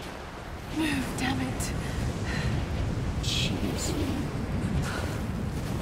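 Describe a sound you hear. Wind howls through a blizzard.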